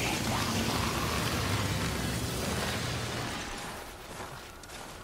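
Wind blows steadily over snow.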